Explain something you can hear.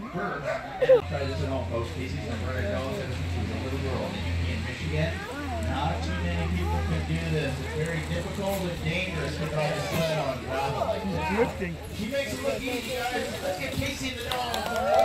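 A dog-pulled wheeled cart rolls over gravel.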